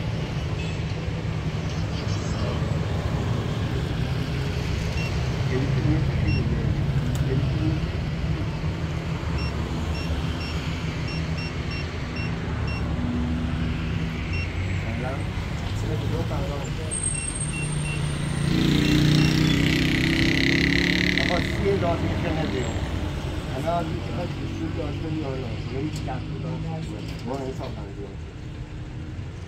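Men talk with each other nearby, outdoors.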